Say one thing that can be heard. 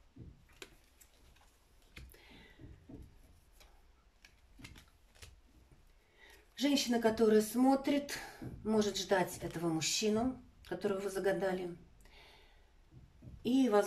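Playing cards tap and slide softly on a hard tabletop.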